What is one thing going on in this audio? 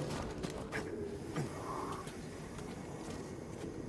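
Hands and feet scrape against a rock wall while climbing.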